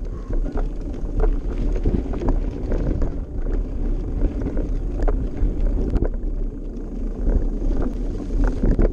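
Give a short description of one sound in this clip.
A bicycle's chain and frame clatter over bumps.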